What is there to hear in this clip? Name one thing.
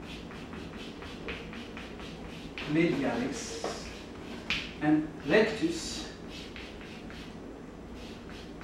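Chalk scratches and taps on a wall in short strokes.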